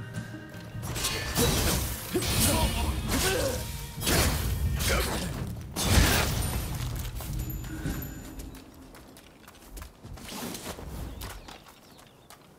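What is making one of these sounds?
Swords clash and strike loudly in a fight.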